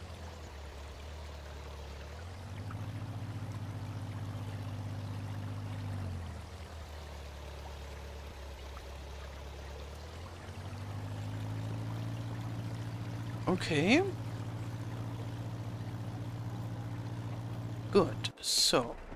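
A tractor engine chugs steadily, and its pitch rises and falls as it speeds up and slows down.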